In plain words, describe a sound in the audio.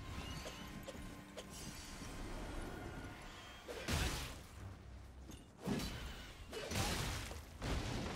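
Huge wings beat heavily through the air.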